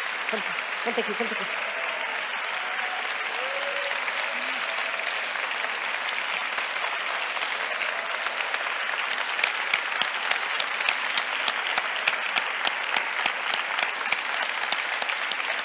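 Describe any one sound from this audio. A large audience claps and cheers in a big echoing hall.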